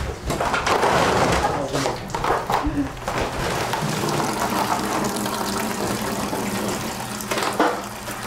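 Sea urchins tumble and knock onto a wooden board.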